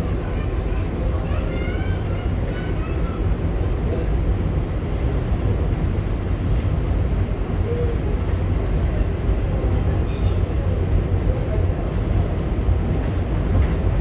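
A subway train rumbles and rattles steadily along the tracks.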